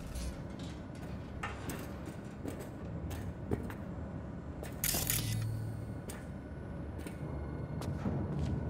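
Footsteps clank on a metal grating.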